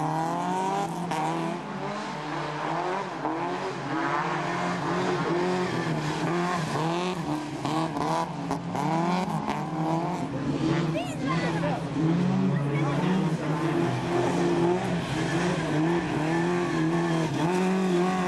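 Tyres skid and spray loose dirt.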